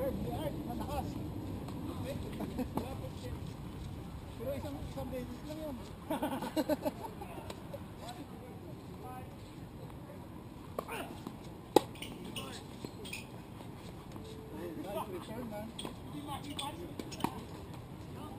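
Tennis balls are struck with rackets, a sharp pop now and then.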